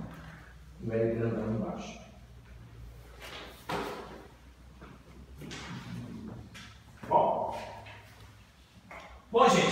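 An older man lectures in a calm, measured voice in an echoing room.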